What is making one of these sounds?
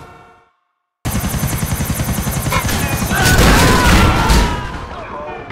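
A helicopter's rotor chops loudly overhead.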